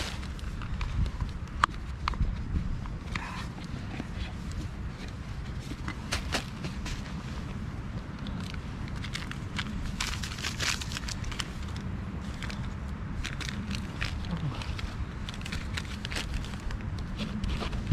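Plastic items click and rattle as a person handles them.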